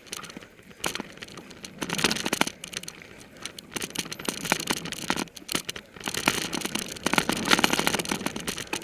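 Bicycle tyres rattle and crunch over a bumpy dirt trail.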